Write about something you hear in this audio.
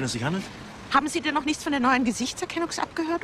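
A middle-aged woman speaks with strained emotion close to a microphone.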